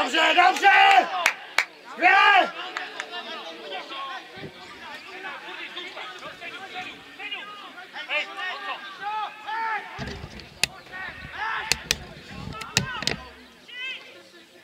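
Adult men shout to one another far off across an open field.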